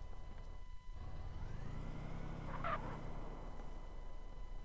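A car engine rumbles as a car drives past.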